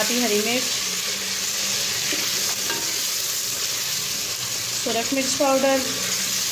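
A metal spoon scrapes and stirs in a pot.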